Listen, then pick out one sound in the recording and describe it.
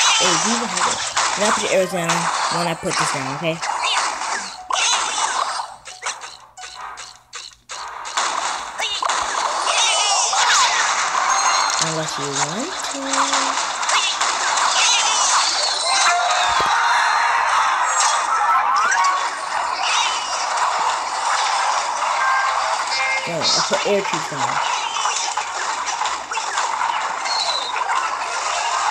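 Video game battle effects crackle and clash.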